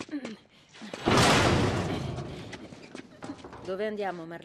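A heavy metal locker scrapes and topples over with a loud crash.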